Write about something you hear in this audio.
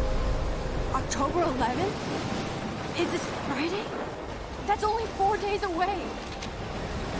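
A young woman speaks quietly and thoughtfully.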